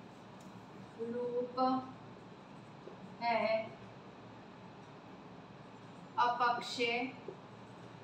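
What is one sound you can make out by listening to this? A woman speaks calmly nearby in short phrases.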